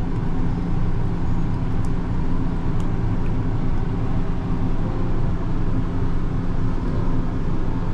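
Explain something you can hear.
A stick stirs paint in a cup with soft scraping.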